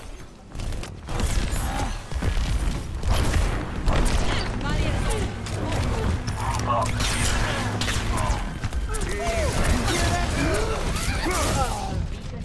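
Explosions boom and crackle in a heated fight.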